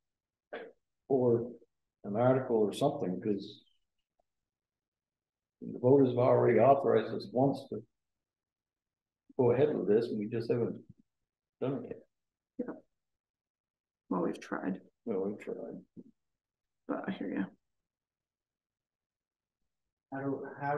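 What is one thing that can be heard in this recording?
An elderly man speaks calmly, with pauses.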